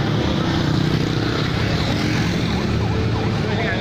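Motorcycle engines rumble past close by.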